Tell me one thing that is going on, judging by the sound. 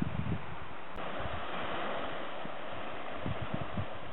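Small waves wash onto a sandy beach.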